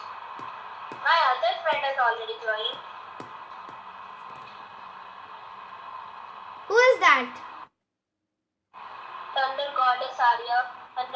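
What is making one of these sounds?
A young boy talks through a phone call.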